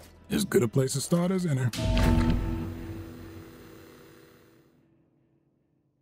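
A short musical sting with a deep boom plays and slowly fades away.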